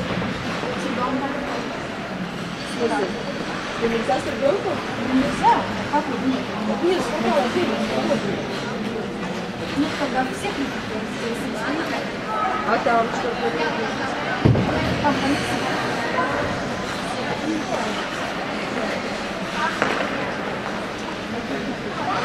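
Ice skate blades scrape and glide over ice.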